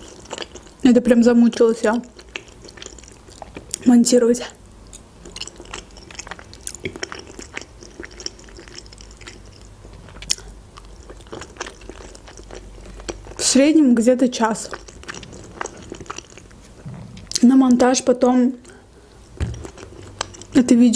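A young woman chews and smacks her lips wetly, close to the microphone.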